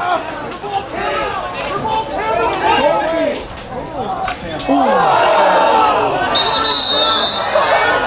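Lacrosse sticks clack together as players fight for the ball.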